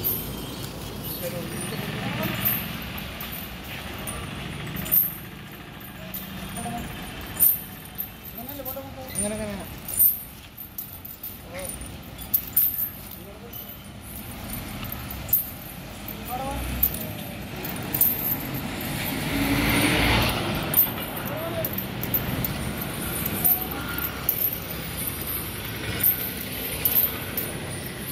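Metal chains clink and jingle in a steady rhythm as a large animal walks.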